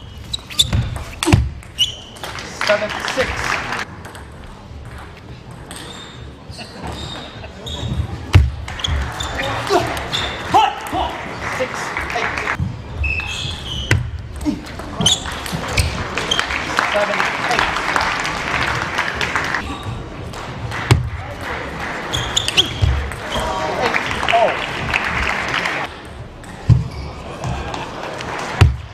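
A table tennis ball clicks sharply back and forth off paddles and the table.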